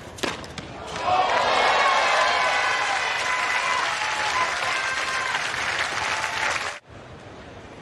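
A crowd cheers and applauds loudly in an open stadium.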